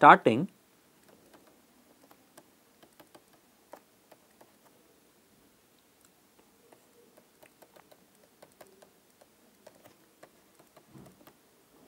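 A pen taps and scratches lightly on a hard surface.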